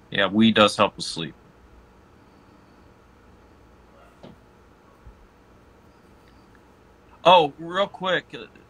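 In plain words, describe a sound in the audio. A young man speaks calmly and close to a phone microphone, with pauses between phrases.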